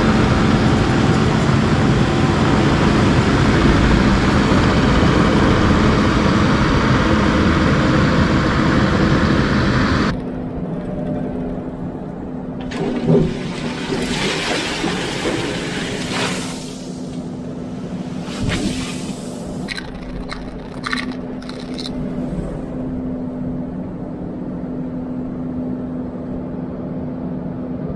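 A diesel engine runs loudly nearby.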